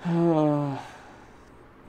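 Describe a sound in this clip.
A young man says something briefly into a headset microphone.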